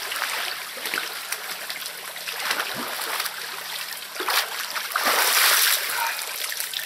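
Water sloshes as a man wades out of a pond.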